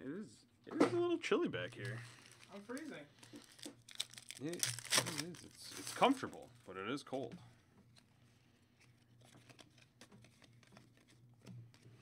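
A plastic wrapper crinkles as it is torn open by hand.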